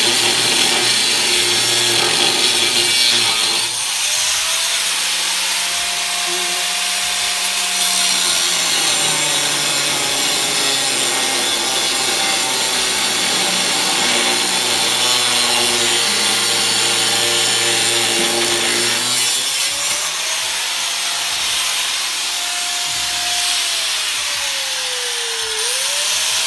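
An angle grinder whines loudly, spinning up and down as it grinds metal.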